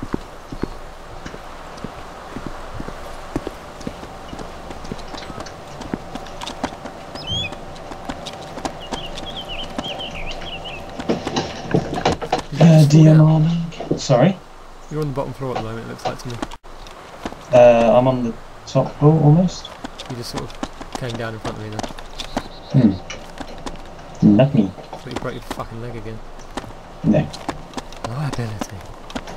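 Footsteps scuff quickly over a hard gritty floor.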